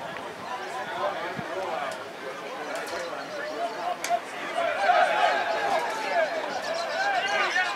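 Players shout to one another on the field.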